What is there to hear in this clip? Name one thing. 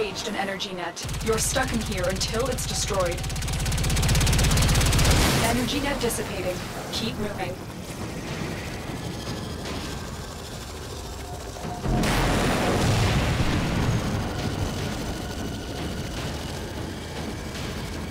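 A spacecraft engine rumbles low and steady.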